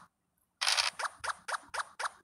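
A game piece hops along the board with quick, even blips.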